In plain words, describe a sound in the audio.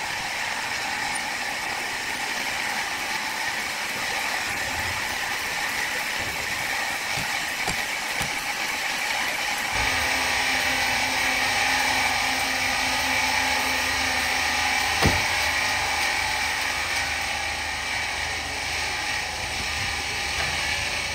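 A band saw cuts through a large log with a steady, noisy whir.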